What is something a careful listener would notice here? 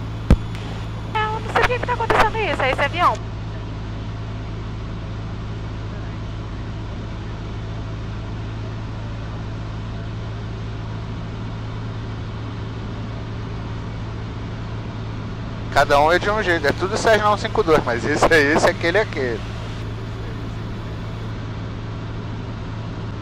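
The piston engine of a single-engine propeller plane drones steadily, heard from inside the cockpit.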